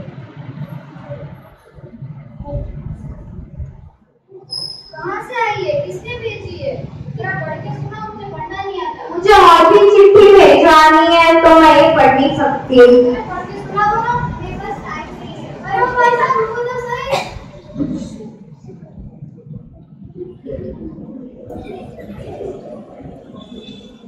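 Children murmur in an audience.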